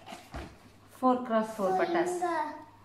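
A young girl speaks excitedly up close.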